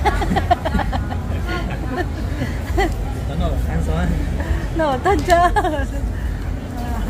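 A young man talks cheerfully and laughs close by.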